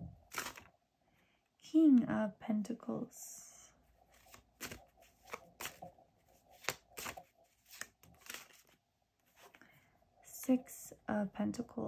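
A card slides and taps onto a table.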